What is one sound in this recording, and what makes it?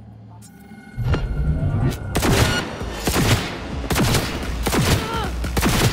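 Gunfire rattles in rapid, loud bursts.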